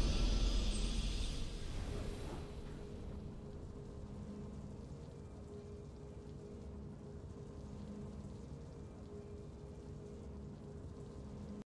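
Soft, low game music hums steadily.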